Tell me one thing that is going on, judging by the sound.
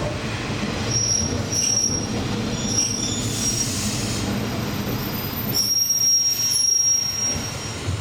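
Train brakes squeal briefly as the train slows to a stop.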